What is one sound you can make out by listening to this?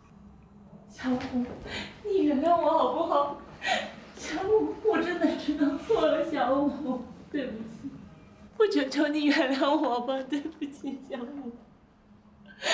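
A young woman pleads tearfully, close by.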